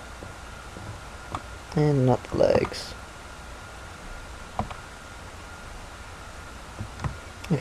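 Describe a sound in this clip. A pickaxe strikes stone with short knocks.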